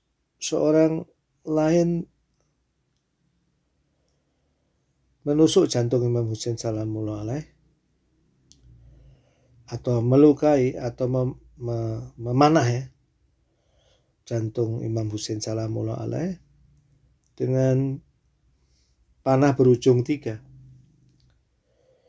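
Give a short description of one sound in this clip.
A man speaks slowly and calmly into a close microphone, with long pauses.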